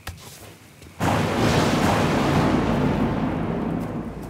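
A loud, steady rushing noise begins suddenly.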